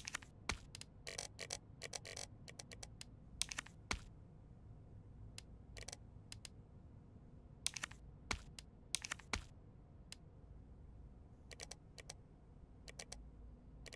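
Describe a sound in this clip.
Short electronic clicks tick as a menu cursor moves through a list.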